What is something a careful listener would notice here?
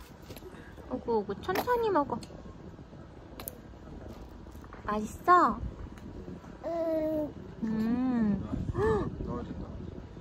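A baby coos and squeals close by.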